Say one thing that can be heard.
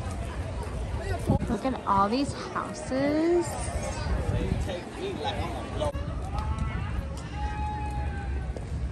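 Men and women talk casually while walking past outdoors.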